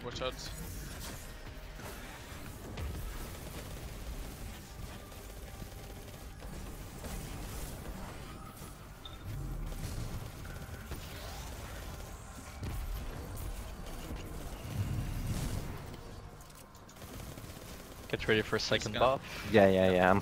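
Gunfire and energy blasts crackle and boom in a video game.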